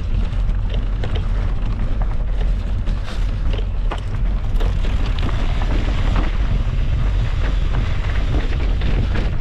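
Mountain bike tyres crunch and rattle over rocky gravel.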